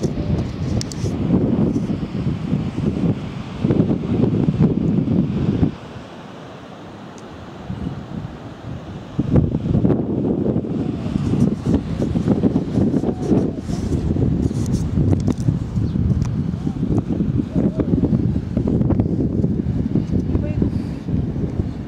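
Strong wind gusts against the microphone outdoors.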